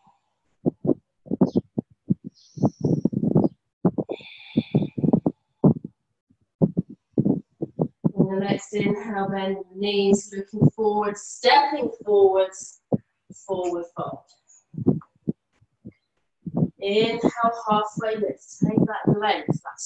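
A woman speaks calmly, instructing, heard through an online call.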